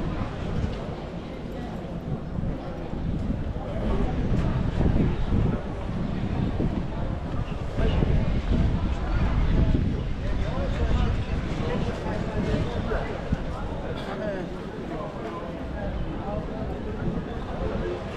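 Many people chatter outdoors.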